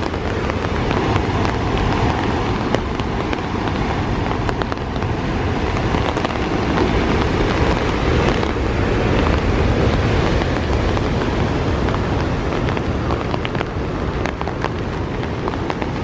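Raindrops tap close by in sharp little clicks.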